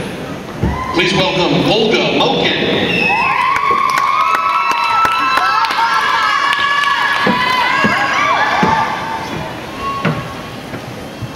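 A crowd cheers and whistles in a large echoing hall.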